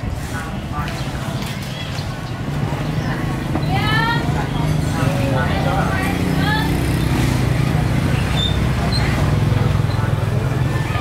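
A motorbike engine hums steadily nearby.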